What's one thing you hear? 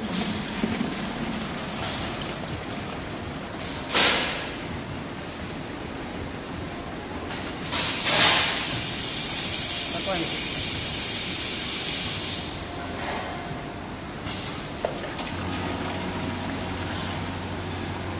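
Liquid pours from a nozzle into a plastic bucket.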